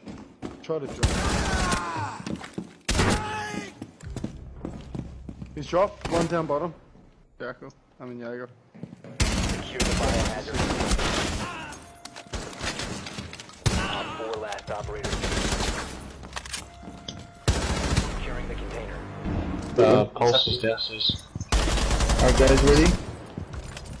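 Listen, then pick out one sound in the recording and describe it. Gunfire rattles in short rapid bursts.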